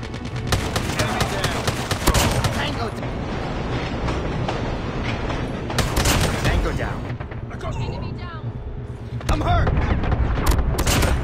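Rapid gunfire rattles in bursts, close by.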